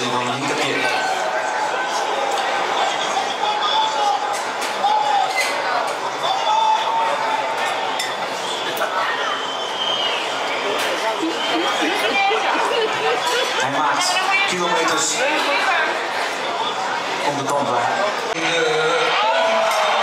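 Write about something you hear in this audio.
A crowd of men and women chatters nearby throughout.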